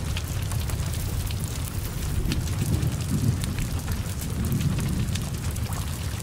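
A car fire roars steadily.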